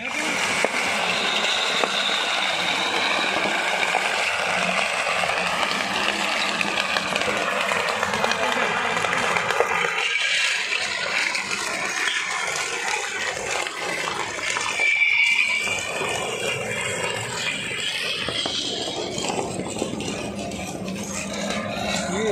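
A road roller's engine rumbles steadily.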